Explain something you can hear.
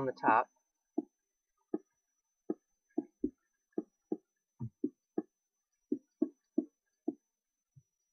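Dirt blocks are placed one after another with short, soft thuds.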